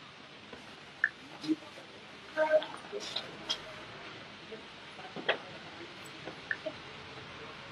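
A baby monkey squeaks in short, high cries.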